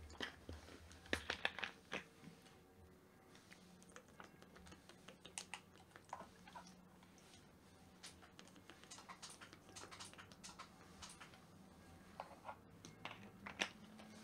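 A plastic bottle crinkles in a hand.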